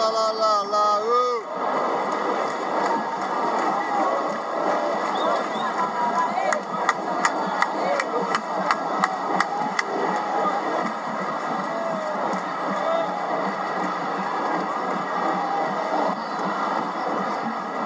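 A huge stadium crowd sings and chants loudly outdoors.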